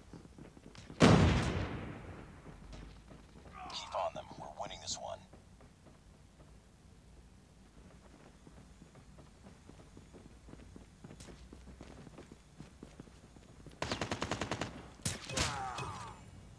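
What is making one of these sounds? A rifle fires loud, sharp shots that echo away.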